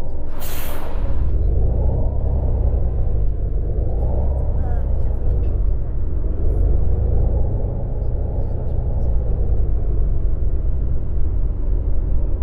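A bus engine revs up and down as the bus pulls away.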